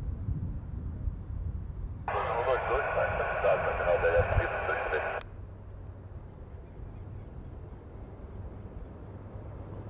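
A helicopter flies past in the distance with a low, throbbing rumble.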